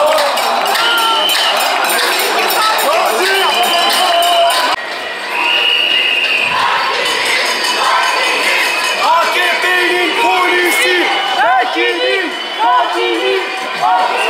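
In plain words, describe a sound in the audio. A large crowd chants and shouts loudly outdoors.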